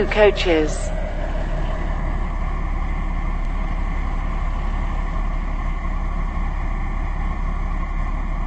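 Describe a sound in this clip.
A diesel train rumbles past slowly.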